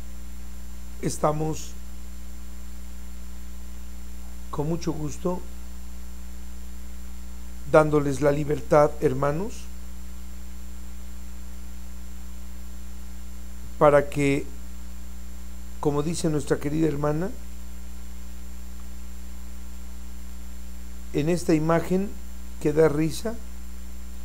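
A man speaks in short, animated bursts with pauses between them.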